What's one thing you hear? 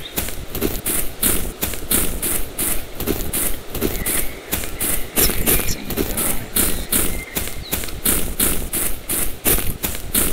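Quick, steady footsteps crunch over dry leaves.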